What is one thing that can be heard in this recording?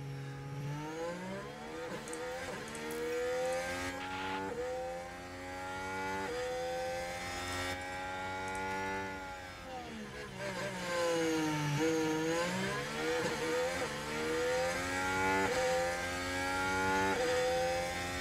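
A racing car engine screams at high revs, rising and dropping as it shifts gears.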